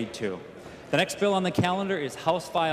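An elderly man speaks calmly through a microphone in a large echoing hall.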